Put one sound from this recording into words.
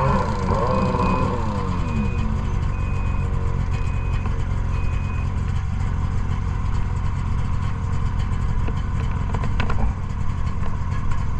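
A snowmobile engine idles with a steady low rumble close by.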